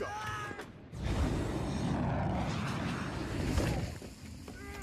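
A large wreck crashes down with a deep rumble.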